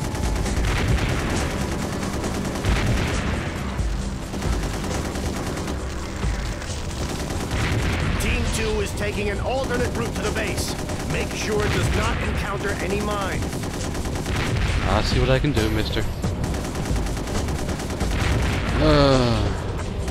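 Laser shots zap in quick bursts.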